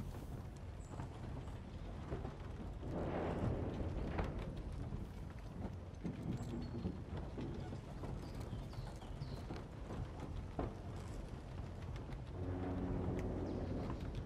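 A man's footsteps thud on wooden planks.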